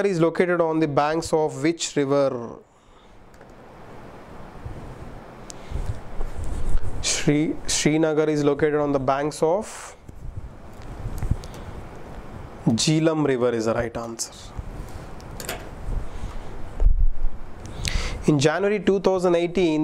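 A young man speaks calmly into a microphone, explaining.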